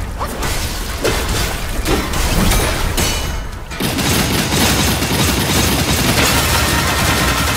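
Blades clash and strike against a creature.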